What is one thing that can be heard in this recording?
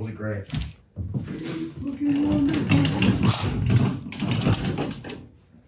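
A heavy cabinet rumbles and scrapes as it rolls on its wheels.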